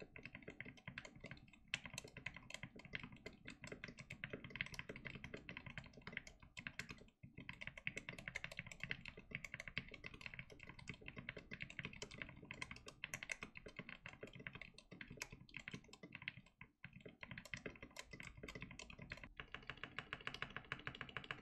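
Keyboard keys clack rapidly and steadily under fast typing, close by.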